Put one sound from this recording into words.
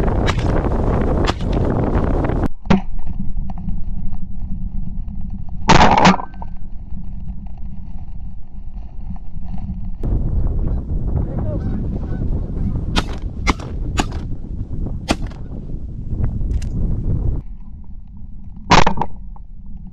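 Shotguns fire in loud, sharp blasts.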